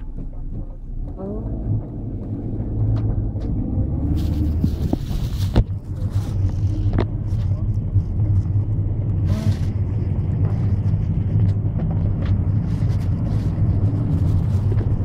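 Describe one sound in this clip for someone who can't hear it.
A minibus engine rumbles steadily while driving.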